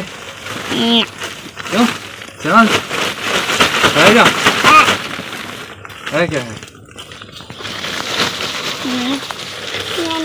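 Soil pours and patters out of a sack.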